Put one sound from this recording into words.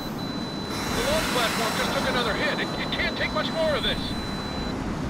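A man speaks urgently over a radio.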